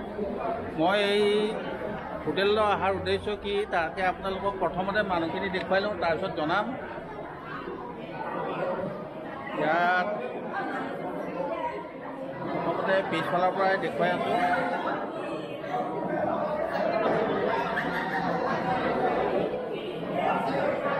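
A crowd of men and women chatters all around in a large echoing hall.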